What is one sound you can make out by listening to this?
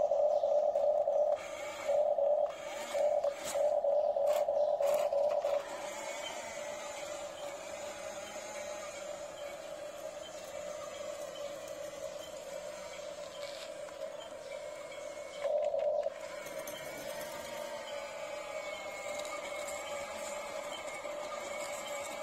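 A toy excavator's small electric motor whines in short bursts.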